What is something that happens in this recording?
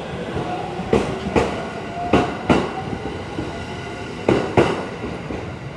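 Steel wheels clack over rail joints as an electric train rolls out.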